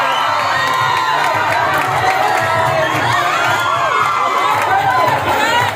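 A group of people clap their hands.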